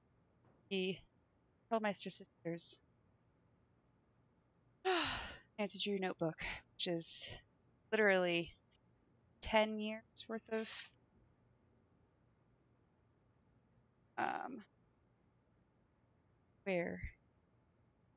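A young woman talks animatedly into a close microphone.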